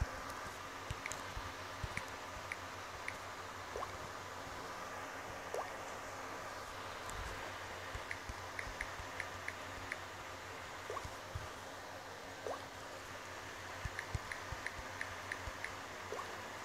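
Phone keyboard taps click in quick bursts.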